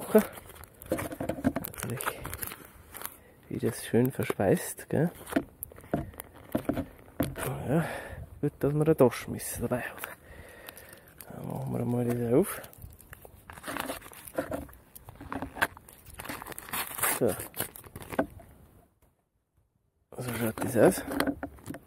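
A foil packet crinkles as it is handled.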